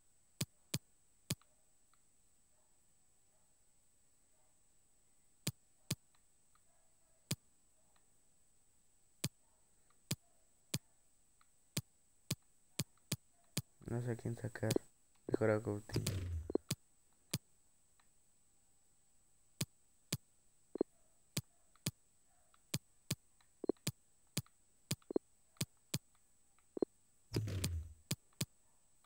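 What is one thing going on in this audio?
Short electronic clicks tick as a menu selection moves.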